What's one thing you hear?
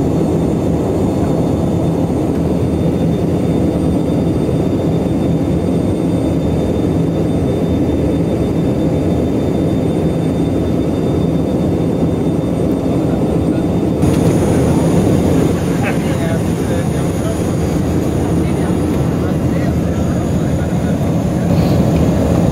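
Aircraft engines drone loudly and steadily inside a cabin.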